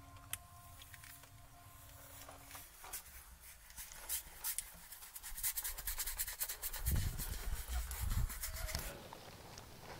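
A paintbrush scrapes and dabs on canvas.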